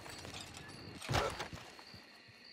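A heavy wooden door thumps open.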